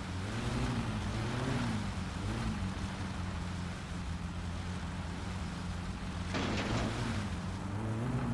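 A car engine hums steadily, rising and falling as it revs.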